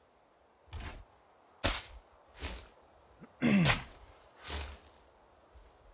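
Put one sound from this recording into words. An axe chops into a tree trunk with sharp thuds.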